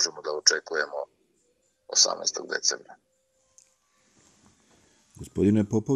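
A middle-aged man speaks calmly and closely into a microphone, pausing between phrases.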